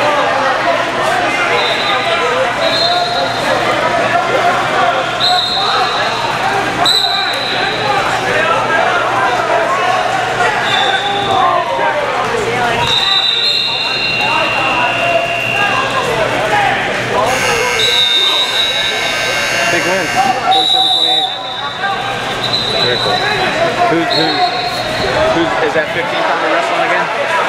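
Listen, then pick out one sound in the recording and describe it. Many people talk and call out at once in a large echoing hall.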